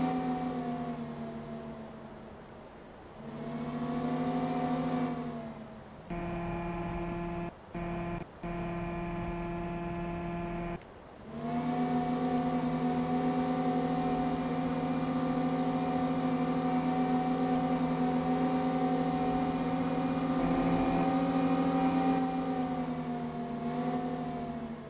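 A diesel engine hums steadily and revs up and down.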